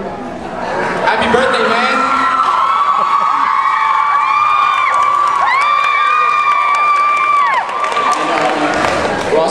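A crowd cheers and screams loudly in a large echoing hall.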